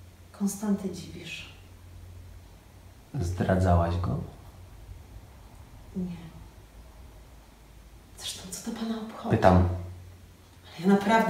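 A young woman speaks calmly and slowly in short phrases, close by.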